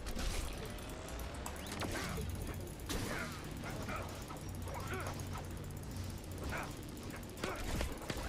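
An electronic weapon fires rapid bursts that strike metal.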